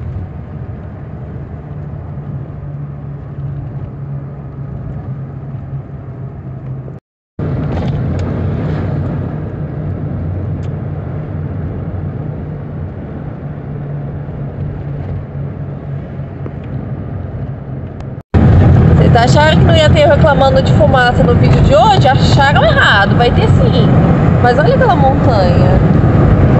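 Tyres roll steadily on a road.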